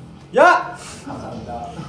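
A young man shouts loudly nearby.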